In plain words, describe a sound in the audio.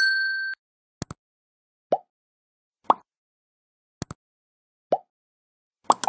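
A computer mouse clicks several times.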